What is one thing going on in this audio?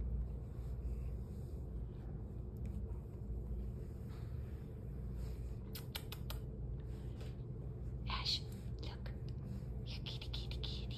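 Fingers rub through a cat's fur.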